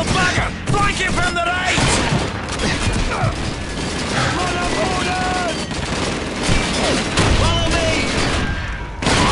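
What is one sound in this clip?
Gunfire crackles and booms in a busy battle.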